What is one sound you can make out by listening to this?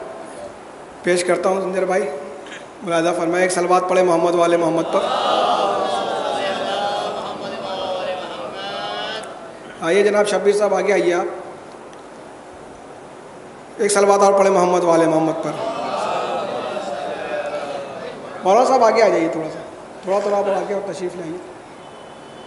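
A young man recites in a drawn-out, singing voice through a microphone.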